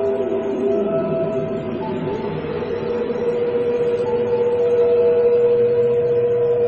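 A steady electronic tone hums, shifting slightly in pitch.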